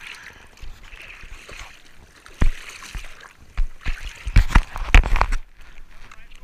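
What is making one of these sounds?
Hands paddle through the water.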